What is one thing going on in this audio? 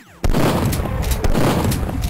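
A shotgun fires with a loud boom.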